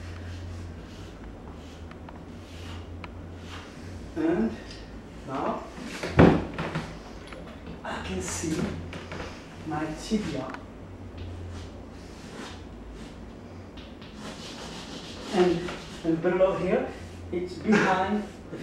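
Chalk scrapes across a wall.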